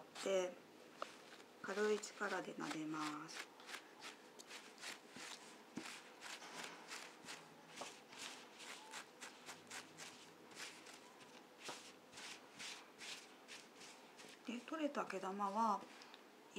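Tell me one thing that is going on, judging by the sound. A block rubs against fabric with quick, scratchy strokes.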